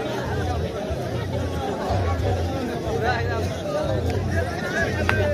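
A large outdoor crowd chatters and murmurs loudly throughout.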